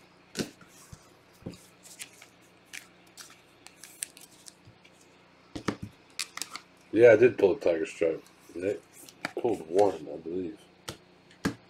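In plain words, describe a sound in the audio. Trading cards slide and tap against each other with soft clicks.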